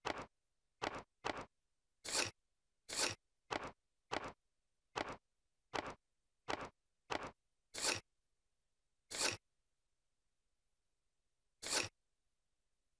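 Short menu sound effects click in quick succession, then more sparsely.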